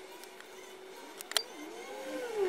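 Scissors snip through a plant stem.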